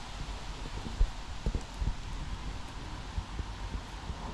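A wreath rustles and knocks as it is set on the ground.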